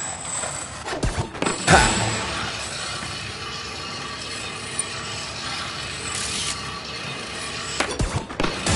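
Skateboard wheels clatter as a board lands hard.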